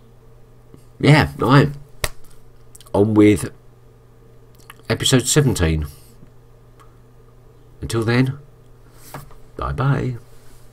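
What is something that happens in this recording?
A middle-aged man speaks close to the microphone in short bursts, with pauses.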